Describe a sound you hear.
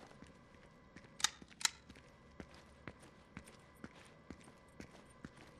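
Footsteps run across a tiled stone floor.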